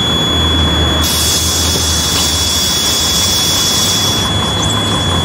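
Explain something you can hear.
Bus doors hiss with a burst of air.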